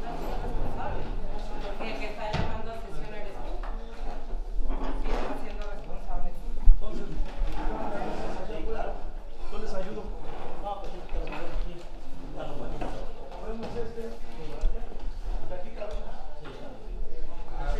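Many men and women talk at once nearby in a room.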